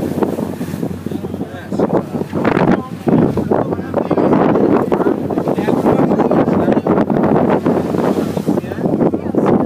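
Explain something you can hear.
Water rushes along a boat's hull.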